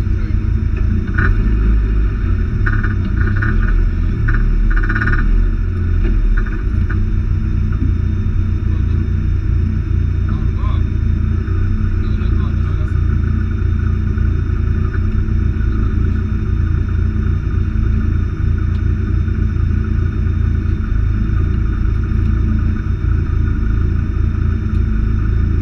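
A turbocharged four-cylinder rally car engine idles, heard from inside the cabin.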